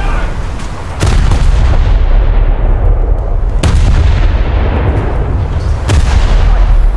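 Heavy naval guns fire with deep booming blasts.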